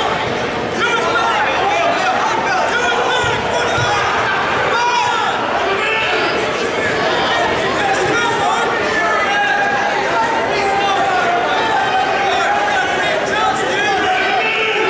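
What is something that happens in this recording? A large crowd of spectators chatters and calls out in a big echoing hall.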